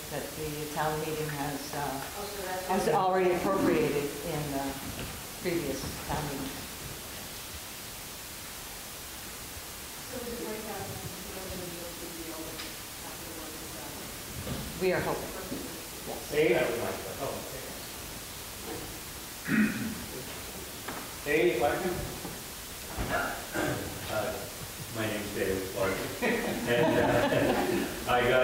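A man speaks out loud to a crowd in a large, echoing hall.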